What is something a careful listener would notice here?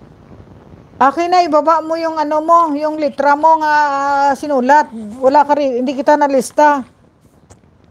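A middle-aged woman speaks with animation close to a microphone.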